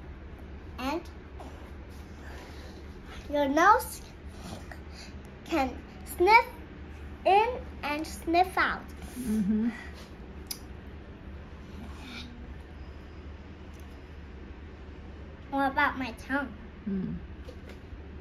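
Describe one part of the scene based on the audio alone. A young girl talks animatedly, close by.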